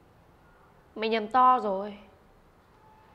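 A second young woman answers in a strained voice.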